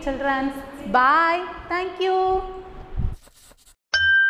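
A woman sings into a microphone in a lively, sing-song way.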